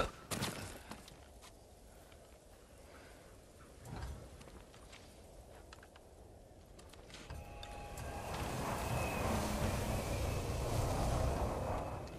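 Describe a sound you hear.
A cloak flaps in the wind.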